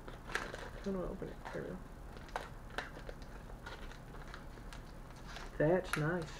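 Paper crinkles and rustles in a man's hands.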